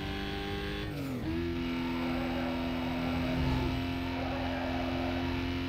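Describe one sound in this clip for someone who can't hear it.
A racing car engine roars at high speed, dropping in pitch with a gear change and then holding steady.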